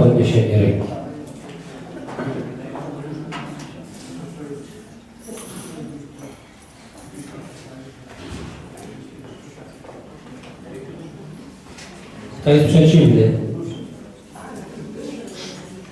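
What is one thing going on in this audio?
A crowd of seated adults murmurs quietly.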